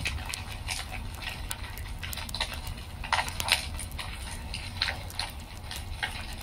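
Flames roar softly in a fire.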